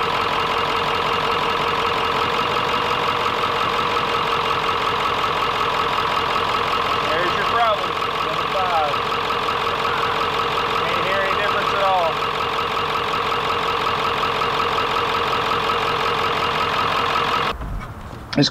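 An engine idles with a steady hum.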